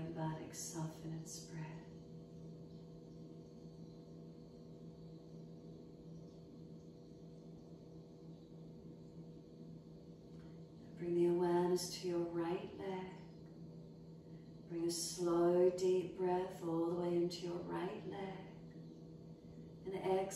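A woman speaks in a calm, soft voice, with long pauses.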